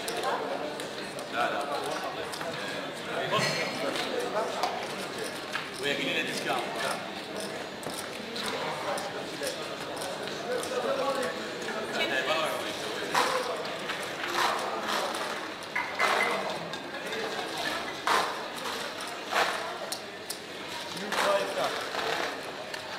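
Casino chips clatter and click as they are stacked and swept across a table.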